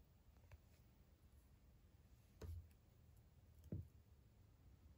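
A small plastic accessory clicks onto a doll.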